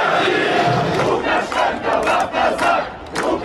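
A large crowd of people shouts and chants outdoors.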